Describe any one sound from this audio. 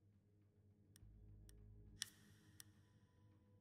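Game menu selections click sharply a few times.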